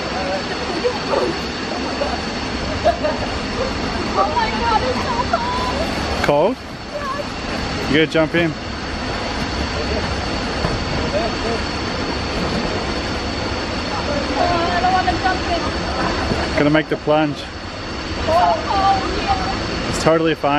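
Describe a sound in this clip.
Swimmers splash in water nearby.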